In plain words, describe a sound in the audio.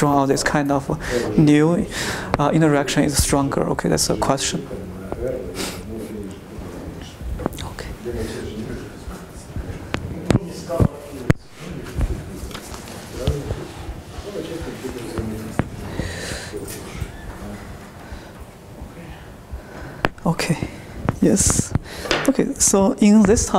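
A man lectures through a clip-on microphone.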